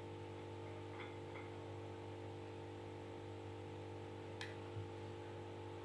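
A spoon clinks lightly against a plate.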